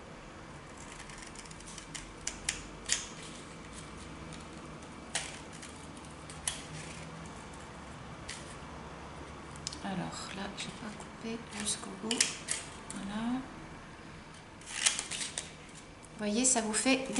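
Scissors snip sharply through paper, again and again.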